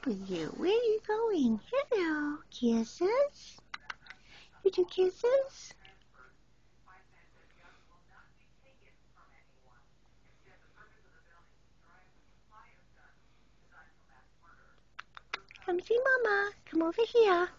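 A cat meows loudly and repeatedly, close by.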